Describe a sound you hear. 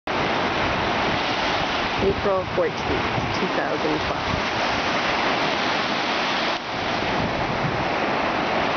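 Waves break and wash steadily onto the shore.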